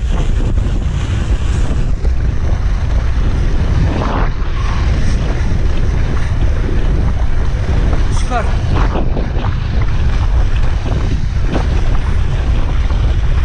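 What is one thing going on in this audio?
Wind buffets the microphone with a loud, steady roar.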